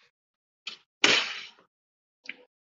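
A glass door is pushed open with a loud clunk.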